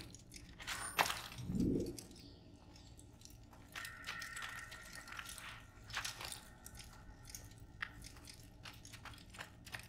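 Footsteps thud on wooden planks and stone.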